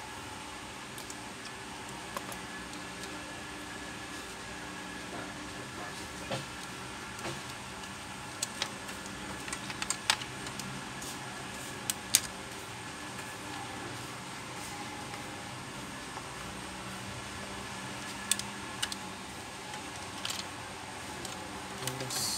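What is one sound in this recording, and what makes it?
Plastic parts click and knock as hands take apart a mechanism.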